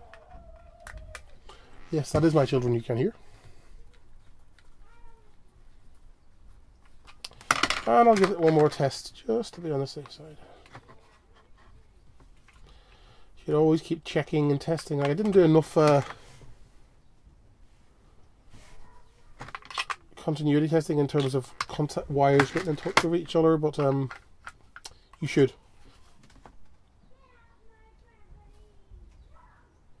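Plastic parts click and rattle as a small device is handled.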